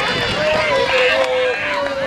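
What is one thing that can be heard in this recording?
Boys cheer and shout together nearby.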